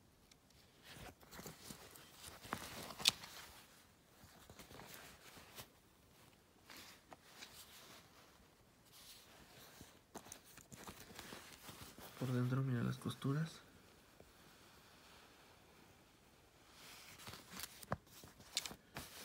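Denim fabric and a paper tag rustle and crinkle as hands handle them.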